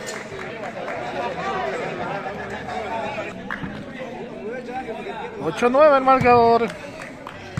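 A crowd of men chatter and call out outdoors.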